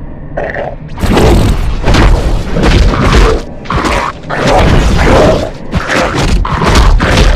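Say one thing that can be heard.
Sword slashes and hits clash rapidly in a game.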